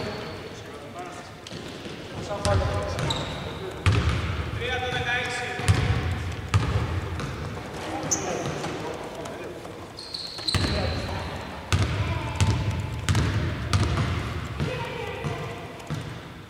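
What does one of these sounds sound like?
A basketball bounces on a hard court in a large echoing hall.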